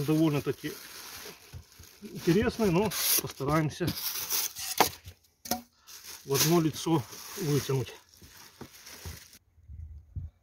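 Plastic sheeting rustles and crinkles as hands pull at it.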